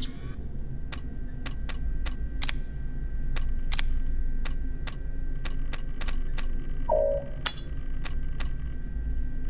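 Short electronic clicks tick quickly, one after another.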